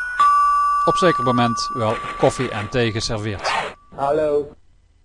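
A doorbell rings with a two-note chime.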